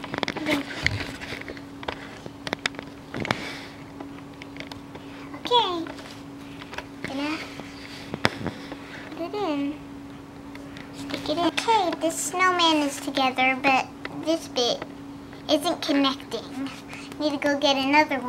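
Small plastic toys knock and tap softly against a hard surface.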